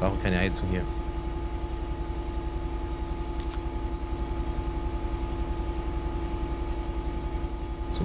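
A train engine hums and rumbles steadily.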